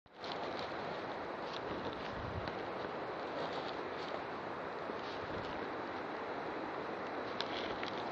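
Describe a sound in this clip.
Footsteps crunch and rustle through dry leaves on a forest floor.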